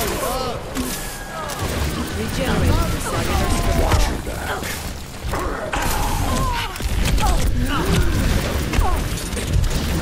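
A game weapon fires a crackling energy beam in rapid bursts.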